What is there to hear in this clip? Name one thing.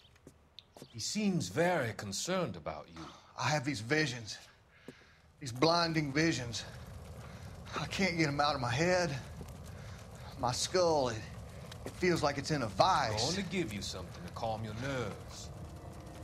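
An older man speaks in a strained, anxious voice.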